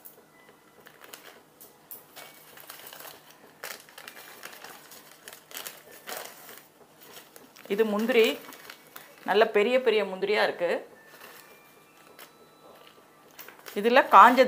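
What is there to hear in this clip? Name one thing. A paper bag crinkles and rustles.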